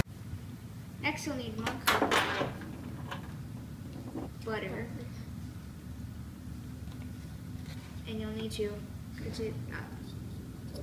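A young girl talks calmly nearby.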